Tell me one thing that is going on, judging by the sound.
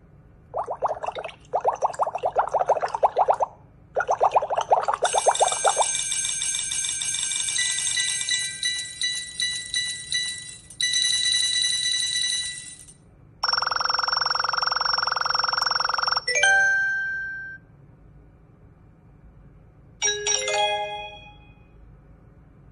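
Electronic game sound effects chime and jingle from a small tablet speaker.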